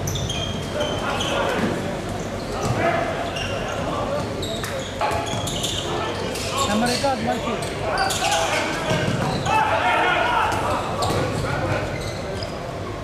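Young men shout to one another across the court.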